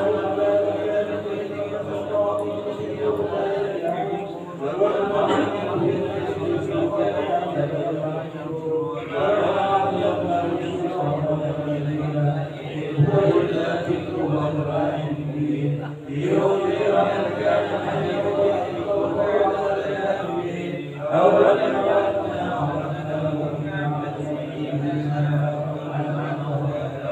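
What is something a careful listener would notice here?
A young man chants in a steady, drawn-out voice close by.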